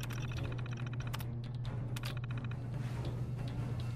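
A computer terminal beeps and clicks.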